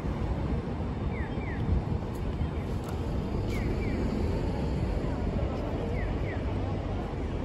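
A crowd of pedestrians walks across a street.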